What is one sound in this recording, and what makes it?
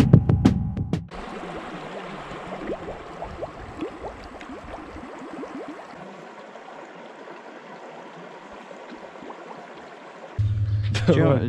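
Water splashes and gurgles.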